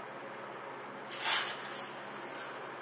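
Tin cans clink together as they are stacked.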